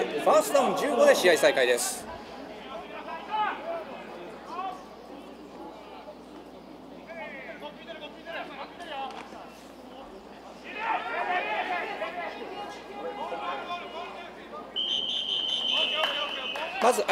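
Players on the sideline shout and cheer outdoors.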